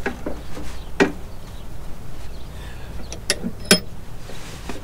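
Metal parts clink and knock.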